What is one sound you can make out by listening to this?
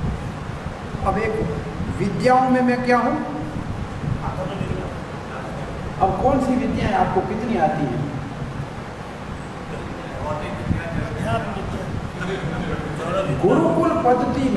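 An elderly man sings in a drawn-out, wavering voice through a microphone.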